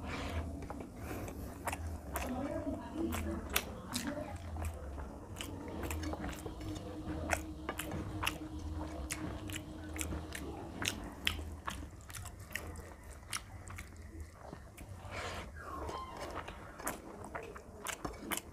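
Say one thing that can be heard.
Fingers squish and mix soft rice on a paper plate, close up.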